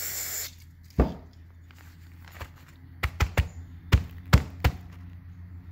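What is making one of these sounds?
A metal part knocks and taps against a paper towel on a hard surface.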